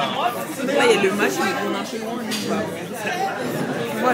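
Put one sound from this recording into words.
Many people chatter in a busy room.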